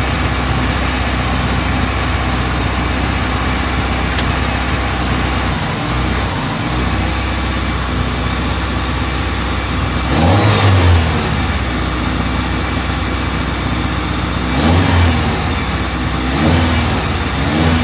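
A car engine idles loudly with a rough, throbbing rumble.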